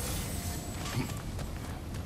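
Heavy footsteps crunch on stony ground.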